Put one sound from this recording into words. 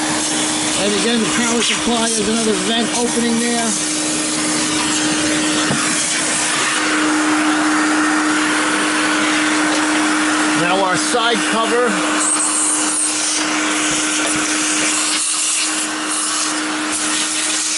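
A vacuum cleaner whirs steadily nearby.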